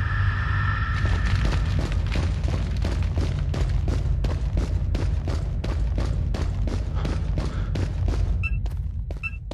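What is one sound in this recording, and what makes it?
Footsteps thud steadily on hard ground.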